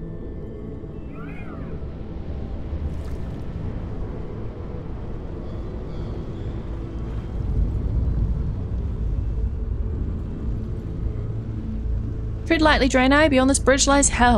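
Wind rushes steadily past in flight.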